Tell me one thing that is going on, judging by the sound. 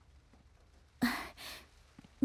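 Boots thud on a hard floor as a man walks in.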